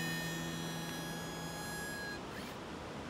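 An acoustic guitar strums a chord that rings out.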